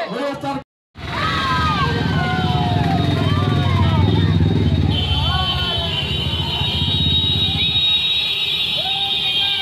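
Many motorcycle engines rumble as they ride past.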